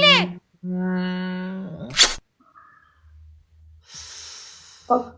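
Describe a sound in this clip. A young woman speaks over an online call.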